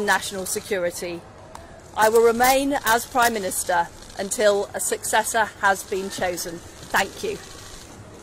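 A woman speaks calmly into a microphone outdoors.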